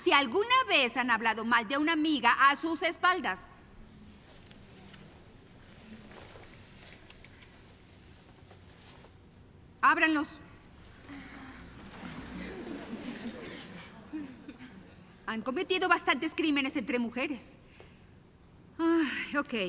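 A woman speaks clearly and with animation, close by.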